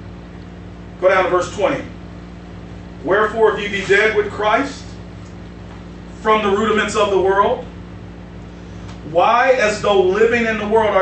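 A man speaks with emphasis into a microphone, in bursts with pauses.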